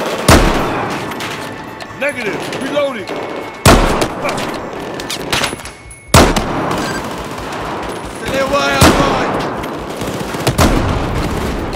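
A scoped sniper rifle fires single shots that echo through a large hall.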